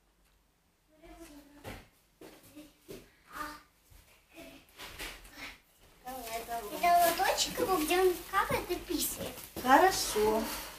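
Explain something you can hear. An elderly woman speaks loudly.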